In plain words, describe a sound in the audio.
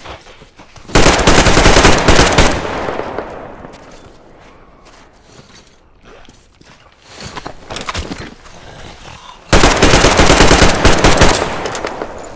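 A rifle fires rapid bursts of automatic gunfire that echo and fade.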